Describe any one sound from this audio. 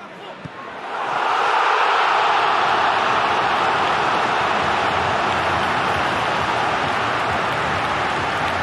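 A large stadium crowd erupts into a loud, sustained roar of cheering.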